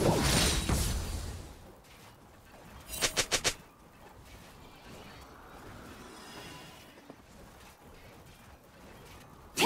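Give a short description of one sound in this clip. Fantasy battle sound effects of spells and hits burst and crackle.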